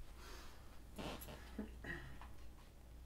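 A sofa cushion creaks and rustles as a person sits down.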